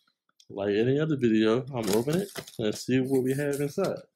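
Scissors snip through packing tape.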